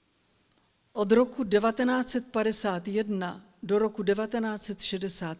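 An elderly woman reads aloud calmly into a microphone.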